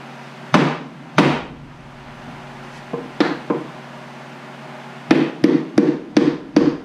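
A hammer taps sharply on wood, striking again and again.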